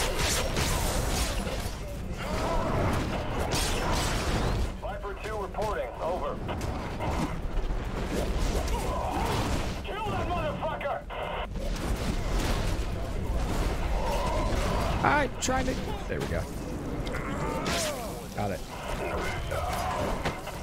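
Explosions boom and gunfire crackles loudly.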